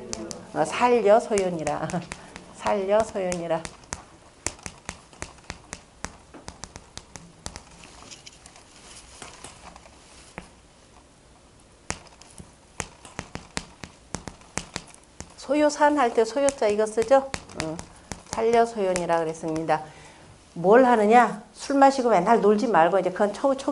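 A middle-aged woman speaks with animation into a microphone.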